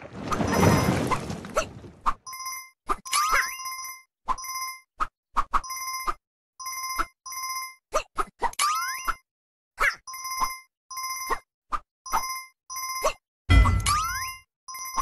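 Game sound effects whoosh and thump as a character jumps and lands.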